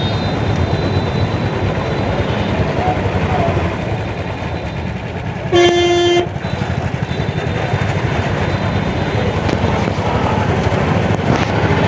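Traffic rumbles steadily on a busy street outdoors.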